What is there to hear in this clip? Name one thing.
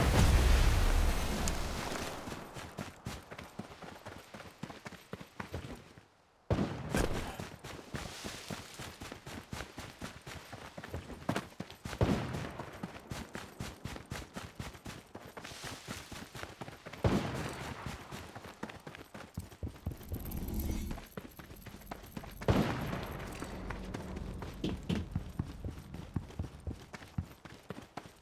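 Quick footsteps crunch steadily over the ground.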